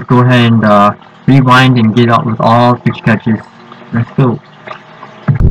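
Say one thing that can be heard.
A young man talks with animation through a webcam microphone.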